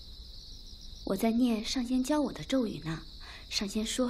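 A young woman answers softly, close by.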